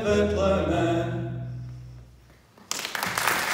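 An acoustic guitar strums a final chord that rings out and fades.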